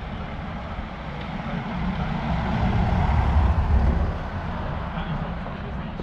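A diesel van drives past.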